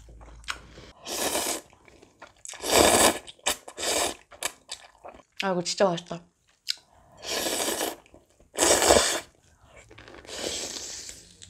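A young woman loudly slurps noodles close by.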